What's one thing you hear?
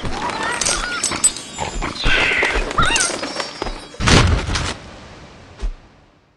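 Video game sound effects crunch and chime in quick bursts.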